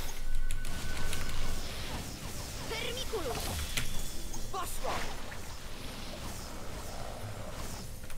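Magic blasts and explosions crackle.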